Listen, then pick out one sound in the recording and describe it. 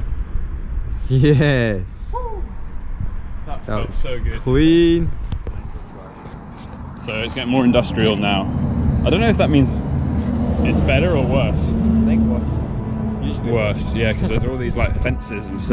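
A young man talks casually close to the microphone.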